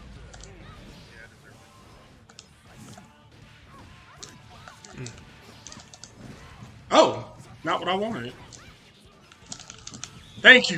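Sharp sword slashes and hits crack repeatedly in a fighting game.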